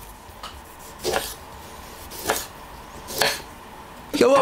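A knife cuts through an orange.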